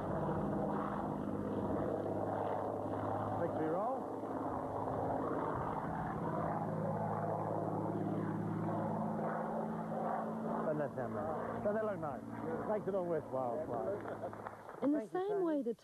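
A propeller plane's engine drones steadily overhead.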